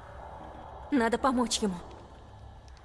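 A young woman says a few quiet words close by.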